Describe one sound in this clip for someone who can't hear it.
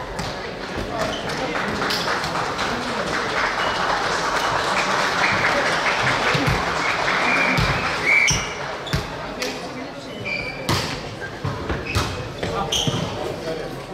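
A volleyball is hit with sharp slaps in a large echoing hall.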